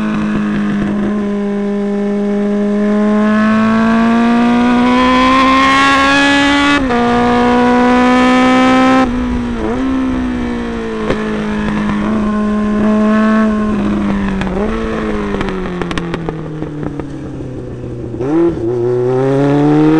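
A motorcycle engine revs high, rising and dropping with gear changes.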